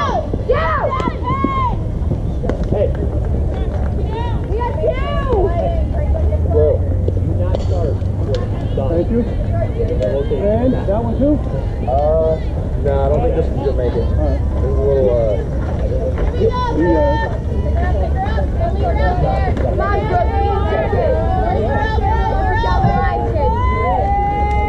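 Young women and girls shout and cheer with animation nearby.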